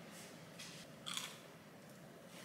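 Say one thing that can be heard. A young woman bites into crunchy toast.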